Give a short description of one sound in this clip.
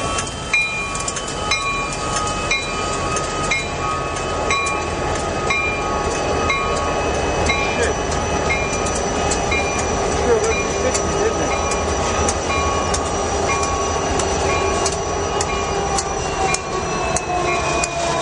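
Steel wheels click rhythmically over rail joints.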